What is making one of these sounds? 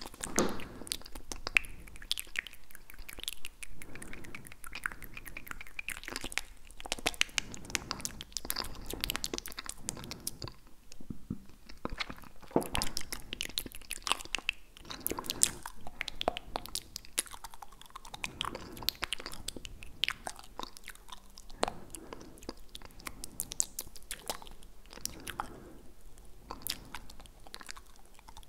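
A young man whispers very close to a microphone.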